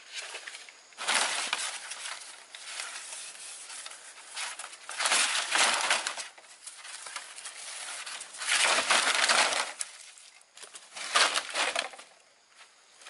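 A strip of bamboo is torn apart in crackling, tearing bursts.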